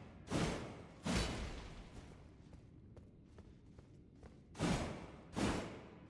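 A heavy blade swooshes loudly through the air in repeated swings.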